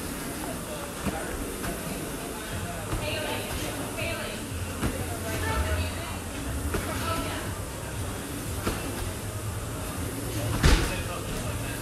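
A medicine ball thumps against a wall again and again.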